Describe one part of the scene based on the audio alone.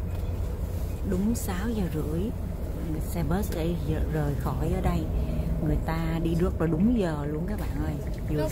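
Adults chat quietly nearby.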